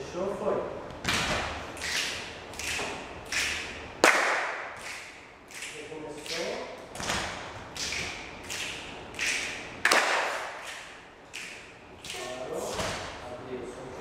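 A group of people clap their hands in a steady rhythm.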